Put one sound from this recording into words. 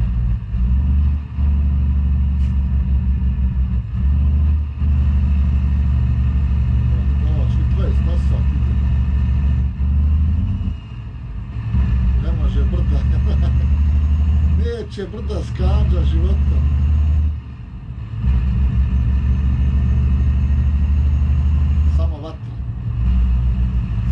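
A truck engine drones low and steady, dipping briefly now and then.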